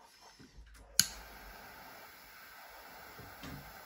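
A butane torch hisses steadily.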